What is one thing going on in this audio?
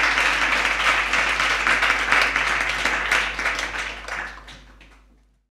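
A small crowd applauds and slowly fades away.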